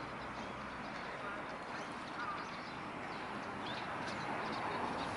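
Water splashes softly as a bird thrashes a fish at the surface.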